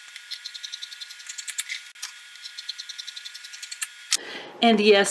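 Scissors snip through fabric with quick, sharp clicks.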